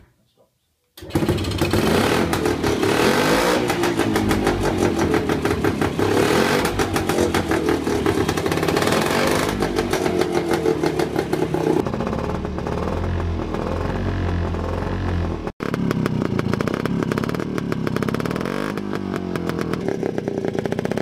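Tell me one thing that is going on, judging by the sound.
A small engine revs up and down.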